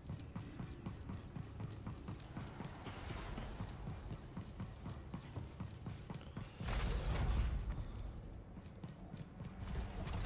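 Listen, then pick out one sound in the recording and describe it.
Footsteps run quickly across a hard metal floor.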